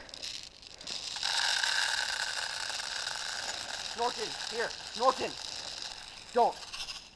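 Liquid pours and fizzes from a bottle.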